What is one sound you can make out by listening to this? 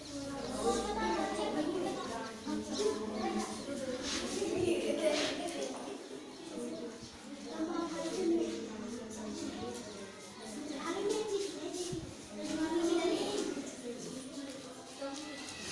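Chalk scratches on a blackboard.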